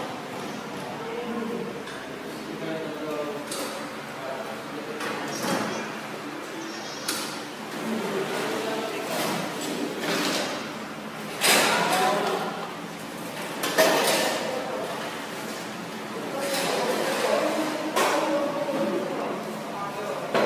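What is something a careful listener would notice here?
A young woman talks loudly and animatedly nearby in a room.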